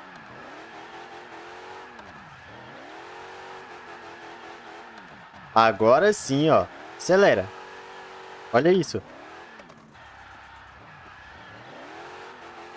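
A car engine revs up and down steadily.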